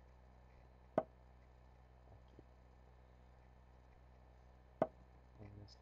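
A short, sharp click sounds as a chess piece is placed on the board.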